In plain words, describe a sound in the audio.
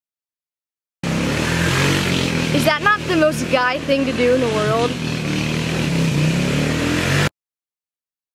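A quad bike engine rumbles and revs nearby.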